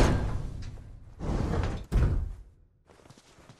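A metal elevator door slides open with a heavy rumble.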